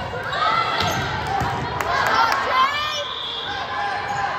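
A volleyball is struck with a sharp slap.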